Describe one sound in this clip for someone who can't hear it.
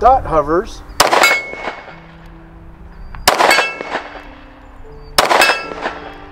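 Gunshots ring out one at a time, each echoing across open ground.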